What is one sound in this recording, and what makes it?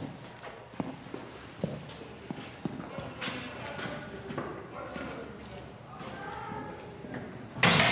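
Footsteps echo on a hard floor.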